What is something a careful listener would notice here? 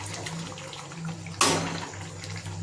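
A metal lid clanks against a pan.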